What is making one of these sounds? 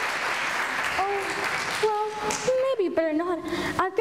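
A young girl speaks in a high voice from a stage in a large echoing hall.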